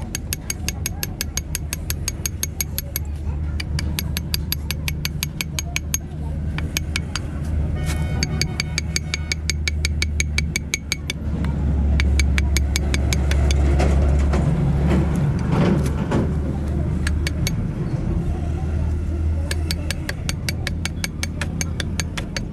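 A metal tool taps rapidly and repeatedly on a metal part.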